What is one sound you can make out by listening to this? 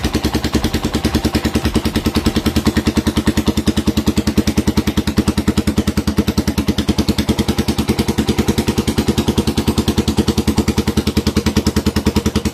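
A motorcycle engine idles with a loud, steady, rapid putter close by.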